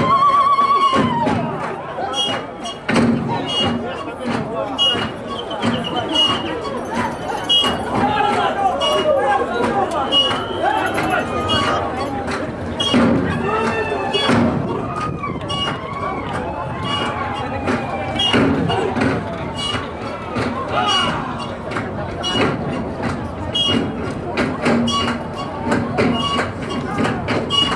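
Dancers stamp their feet on a stage.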